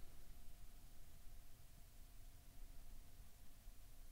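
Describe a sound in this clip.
Dice clatter onto a table.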